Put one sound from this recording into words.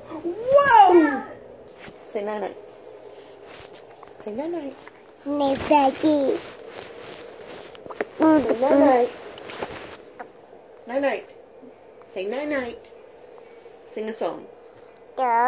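A toddler babbles and squeals up close.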